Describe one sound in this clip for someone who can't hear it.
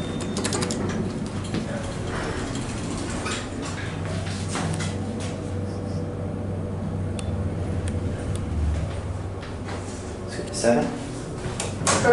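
An elevator hums low and steadily as it travels.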